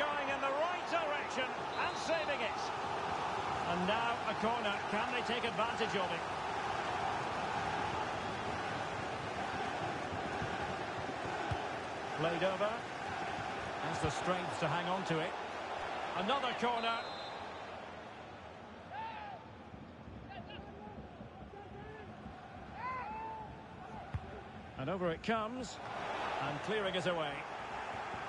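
A stadium crowd roars steadily, swelling and easing.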